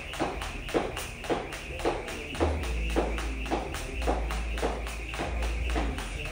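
A jump rope whips the floor in a steady rhythm.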